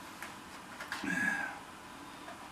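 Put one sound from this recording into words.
Paper wrappers rustle in a man's hands.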